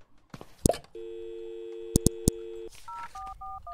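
A telephone dial tone hums steadily.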